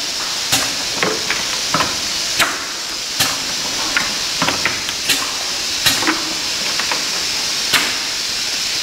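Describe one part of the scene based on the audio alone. Plastic caps click and clatter as a machine presses them onto bottles.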